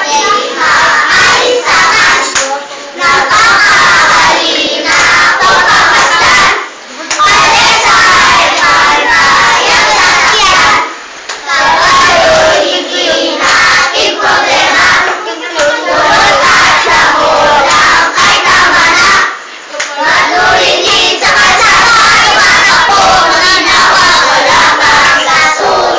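Young children sing loudly together in a chant, close by.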